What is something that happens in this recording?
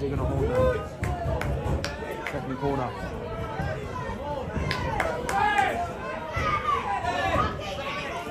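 A crowd of football fans chatters and cheers nearby outdoors.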